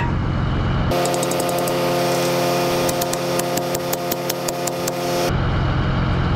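A hammer strikes a metal pin with ringing clangs.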